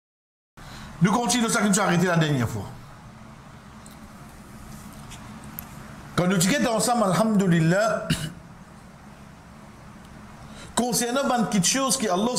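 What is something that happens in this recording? A man speaks calmly and clearly into a nearby microphone, in short bursts with pauses.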